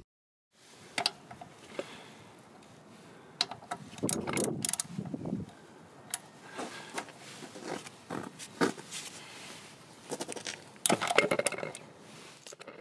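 A metal socket clicks and clinks against a bolt.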